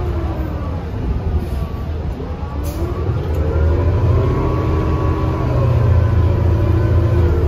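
A bus rattles and creaks as it rolls along.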